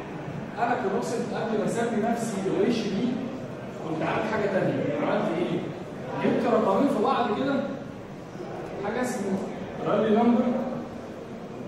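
A young man speaks steadily as if teaching, in a room with a slight echo.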